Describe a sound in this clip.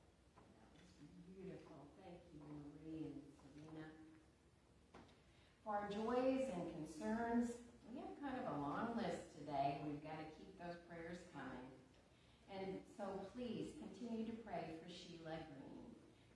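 A woman speaks calmly into a microphone, close by.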